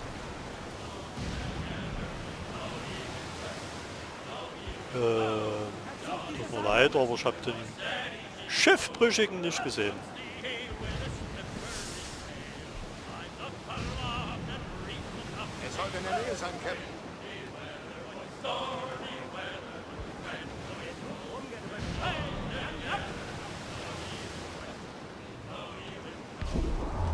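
Waves wash and splash around a sailing ship.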